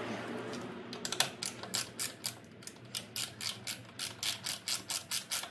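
A ratchet wrench clicks rapidly as it turns a screw.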